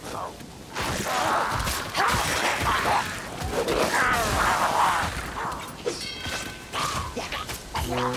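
Swords clash and thud in a close melee fight.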